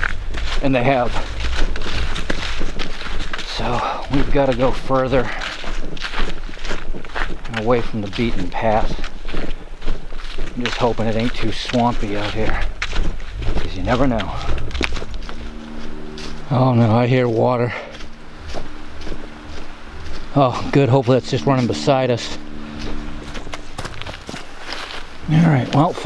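A middle-aged man talks calmly, close to a microphone.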